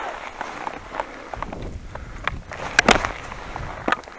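A ski pole crunches into the snow.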